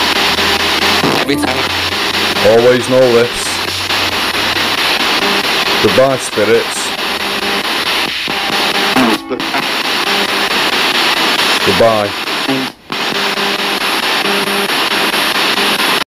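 A handheld radio sweeps rapidly through stations with harsh hissing static.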